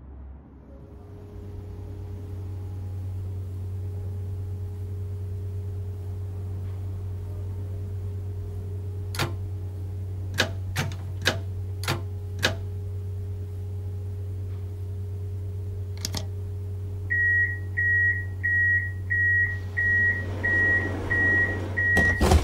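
A tram's electric motor hums steadily.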